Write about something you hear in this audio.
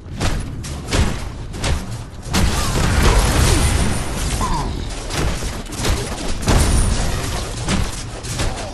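Weapons clash and magic blasts burst in quick succession.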